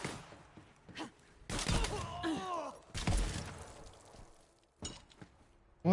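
A shotgun fires in loud, booming blasts.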